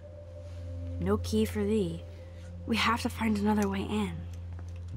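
A young woman speaks in a low, resigned voice nearby.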